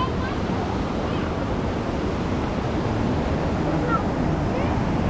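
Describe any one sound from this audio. Footsteps tread on a wooden footbridge outdoors.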